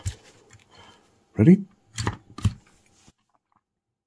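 A plastic lid snaps shut with a click.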